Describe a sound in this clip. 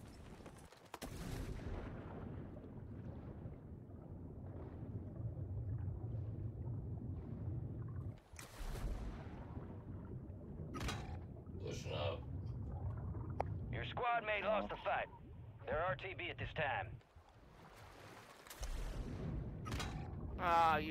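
Water murmurs and bubbles in a low, steady rumble.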